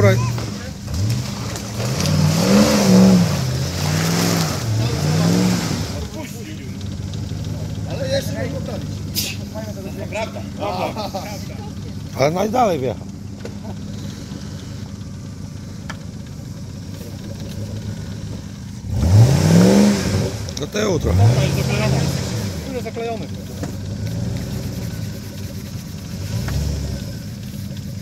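An off-road vehicle's engine revs hard, rising and falling.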